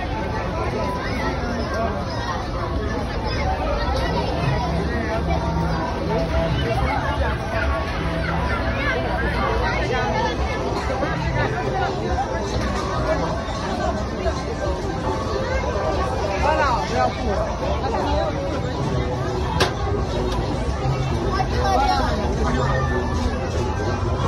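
Loud music thumps through loudspeakers.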